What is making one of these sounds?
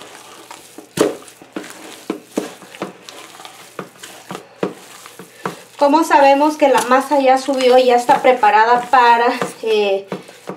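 Hands knead wet dough in a metal bowl with soft squelching slaps.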